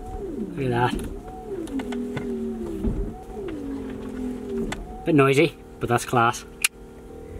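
A young man laughs and talks excitedly up close.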